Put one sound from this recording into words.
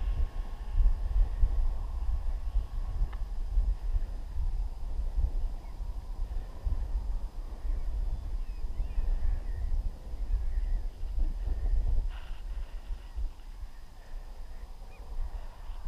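Strong wind rumbles and buffets against the microphone outdoors.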